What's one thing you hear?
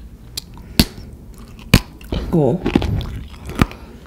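A young man bites into soft food close to a microphone.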